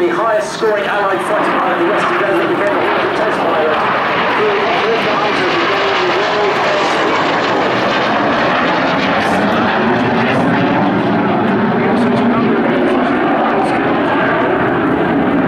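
A jet engine roars loudly overhead, its pitch shifting as it flies past.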